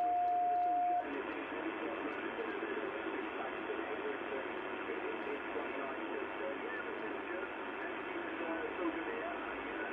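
A radio hisses with steady static.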